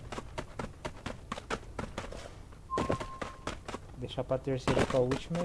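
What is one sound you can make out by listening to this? Footsteps run quickly over grass and rock.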